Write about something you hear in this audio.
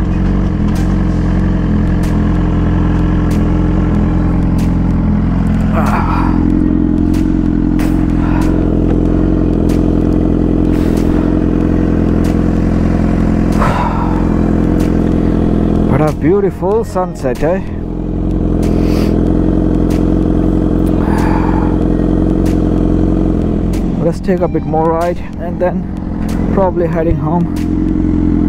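A motorcycle engine hums steadily while riding at speed.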